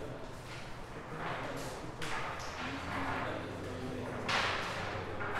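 A cue strikes a ball with a sharp tap.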